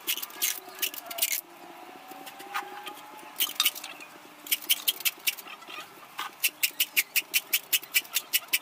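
Hollow bamboo poles knock together in quick, sharp clacks.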